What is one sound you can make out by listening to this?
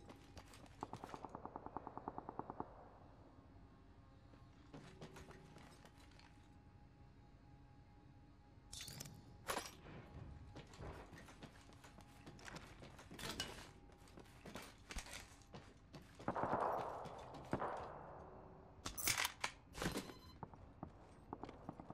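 Pickup items click and chime.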